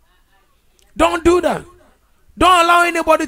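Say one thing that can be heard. A man speaks loudly and with emphasis into a close microphone.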